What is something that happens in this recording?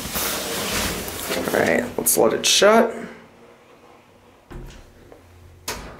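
Elevator doors slide open and shut.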